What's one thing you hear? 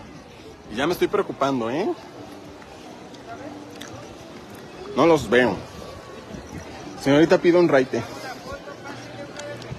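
A crowd chatters in the distance outdoors.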